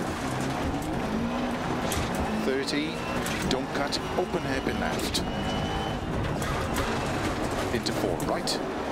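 A rally car engine roars and revs while driving.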